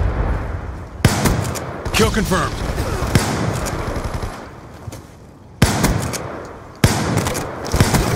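A rifle fires sharp shots in bursts.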